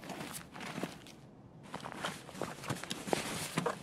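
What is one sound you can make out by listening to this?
Gear rustles and clicks as items are moved around.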